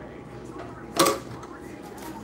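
A metal press arm clanks as it swings into place.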